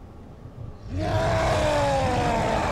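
A deep, gravelly voice roars loudly and close.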